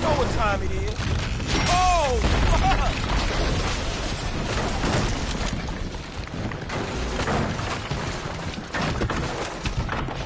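A house collapses with a loud crash and rumble of falling debris.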